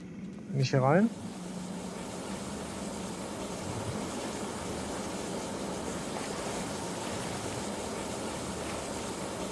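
Hot springs bubble and hiss steadily.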